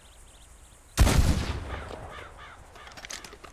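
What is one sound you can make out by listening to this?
A rifle shot cracks and echoes.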